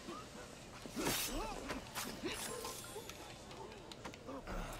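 Men grunt and cry out in a scuffle.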